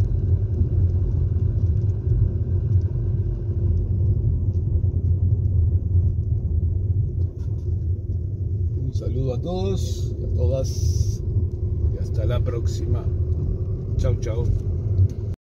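A car engine hums steadily as the car drives along a street.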